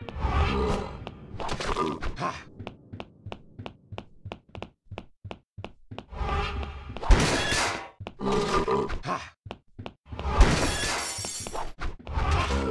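Blades swing and strike in a fight.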